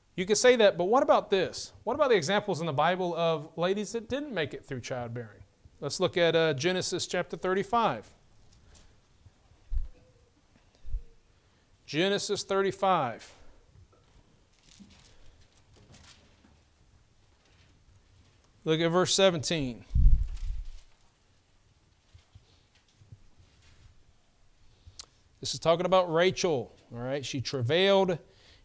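A man speaks calmly into a microphone, pausing often.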